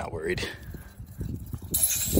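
Liquid glugs and trickles as it pours from a plastic bottle.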